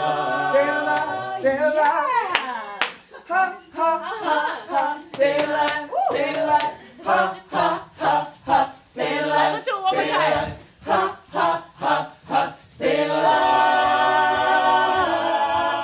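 A group of young men and women sing and chant rhythmically in a large room.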